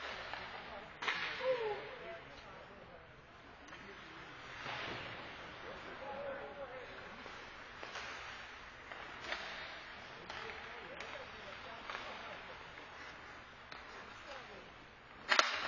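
Hockey sticks click against a puck.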